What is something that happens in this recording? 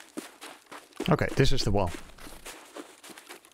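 A man speaks briefly and loudly into a close microphone.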